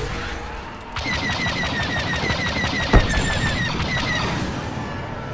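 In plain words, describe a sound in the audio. Laser cannons fire in a rapid stream of shots.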